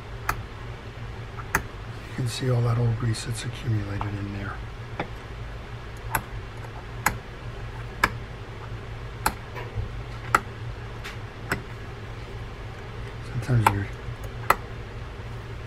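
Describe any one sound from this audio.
A small metal pick scrapes and taps against a metal part.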